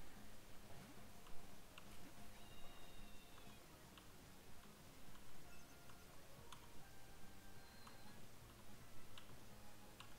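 Game sound effects chime and beep.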